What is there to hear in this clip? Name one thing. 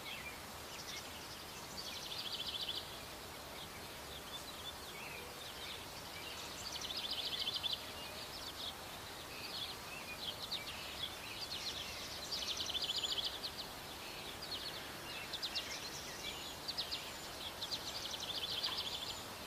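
A hedgehog sniffs and snuffles close by.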